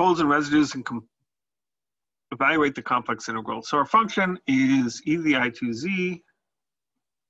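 A man speaks calmly and steadily into a nearby microphone, with pauses.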